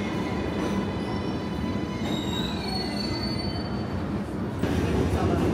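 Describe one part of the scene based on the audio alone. Train brakes squeal as a train slows to a stop.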